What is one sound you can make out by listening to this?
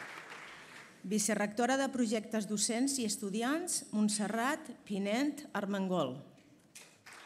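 A woman speaks calmly into a microphone, heard through loudspeakers.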